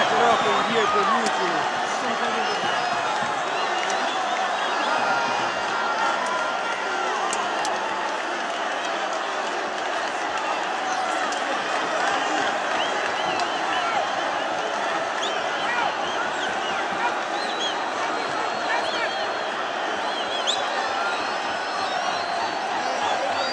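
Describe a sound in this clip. A large stadium crowd roars and chatters steadily all around.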